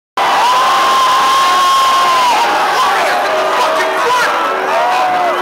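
A large crowd cheers and screams loudly outdoors.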